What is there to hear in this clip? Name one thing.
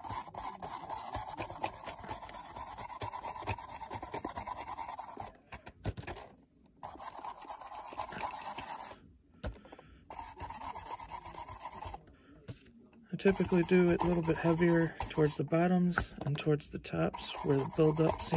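A stiff paintbrush scrubs across the side of a plastic model boxcar.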